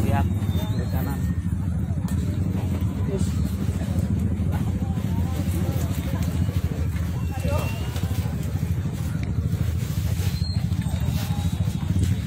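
A crowd of people talks and shouts outdoors.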